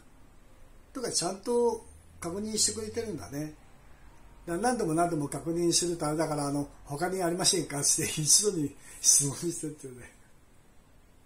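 A middle-aged man talks close by in a lively voice.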